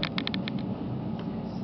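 Train wheels click rapidly over rail joints.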